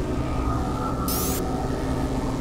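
A short electronic swish sounds as a handheld device opens.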